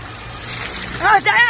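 A young woman squeals in shock.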